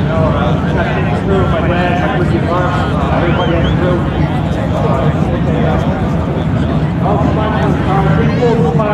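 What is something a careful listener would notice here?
Two men talk with each other outdoors.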